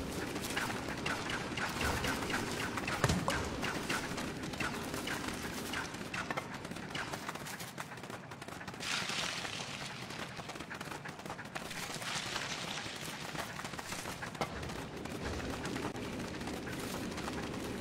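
Light footsteps patter quickly over the ground.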